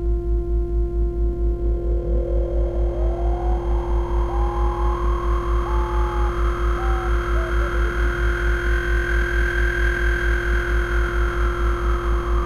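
Synthesizer tones glide up and down and bleep.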